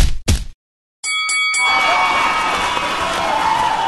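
A cheerful victory jingle plays with bright chimes.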